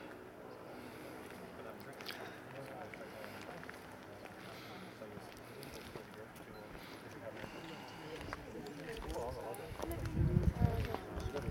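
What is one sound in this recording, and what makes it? A group of men and women chat quietly nearby, outdoors.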